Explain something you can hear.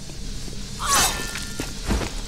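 A large blade whooshes through the air.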